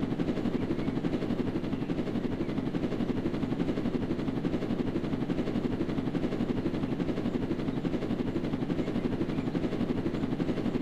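A helicopter's rotor thumps steadily with a low engine whir.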